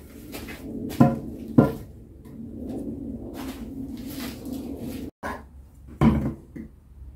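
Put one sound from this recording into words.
Wooden boards knock against each other.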